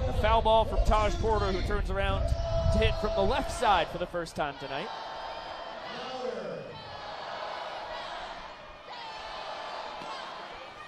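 A crowd murmurs and cheers outdoors.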